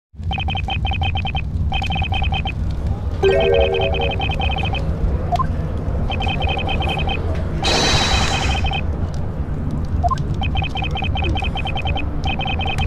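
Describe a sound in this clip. A rapid stream of short electronic blips chatters on and off.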